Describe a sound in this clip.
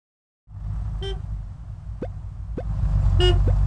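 A video game plays short chirping hop sounds.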